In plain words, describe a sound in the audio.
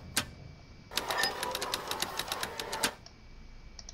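A small metal mechanism clicks and ratchets rapidly.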